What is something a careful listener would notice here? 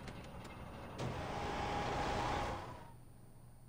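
A truck engine starts and idles.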